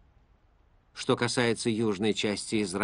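A middle-aged man speaks calmly and clearly, close by.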